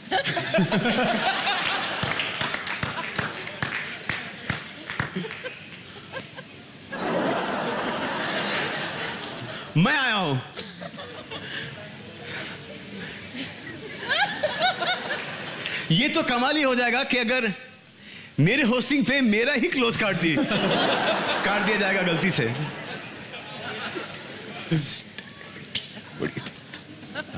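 A large audience laughs and cheers in a big echoing hall.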